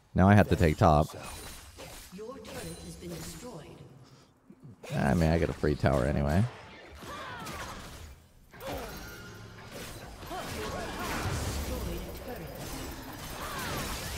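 Game spell effects whoosh and chime.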